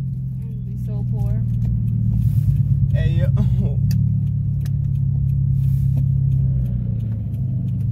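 A car engine hums low while the car rolls slowly, heard from inside the car.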